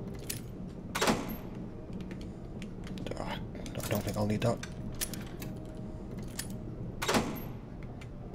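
A metal cabinet door clicks open.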